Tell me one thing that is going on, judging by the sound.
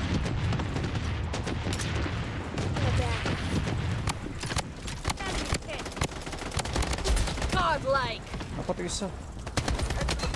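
Gunshots crack repeatedly in quick bursts.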